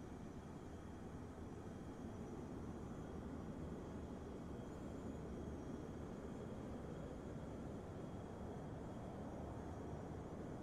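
A glider's wheel rumbles steadily as it rolls along a runway.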